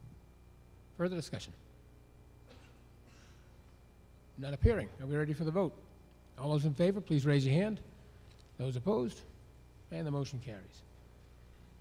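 A middle-aged man speaks calmly in short phrases through a microphone.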